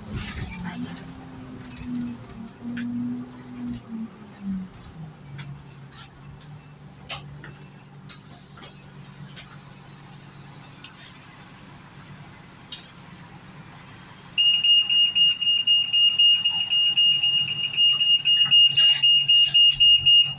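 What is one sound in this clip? A diesel bus engine idles.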